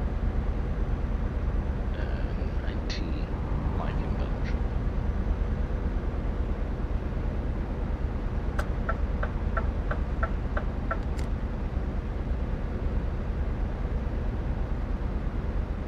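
A truck engine rumbles steadily at a low pitch.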